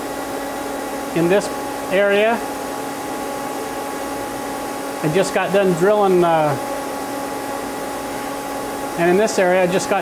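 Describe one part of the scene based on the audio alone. An electrical hum drones steadily.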